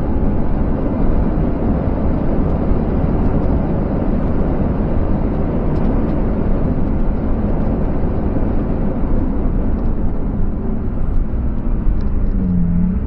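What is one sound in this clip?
Wind and road noise roar loudly around the car at high speed.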